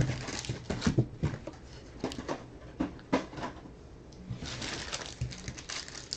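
Cards in packs rustle and tap as they are stacked.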